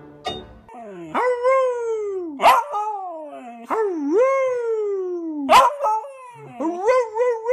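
A beagle howls loudly in long, wavering rising and falling cries.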